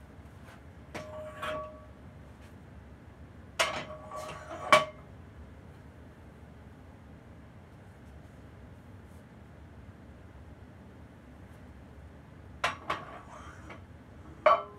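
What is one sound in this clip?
Metal weight plates clank and ring against a barbell.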